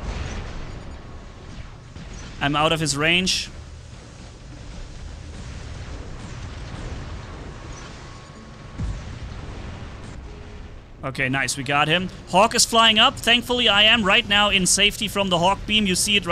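Guns fire and boom in a video game.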